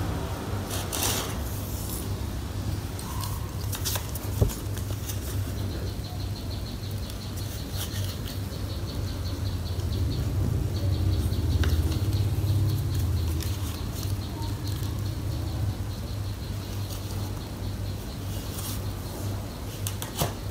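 A heavy metal motor knocks and clunks as it is handled.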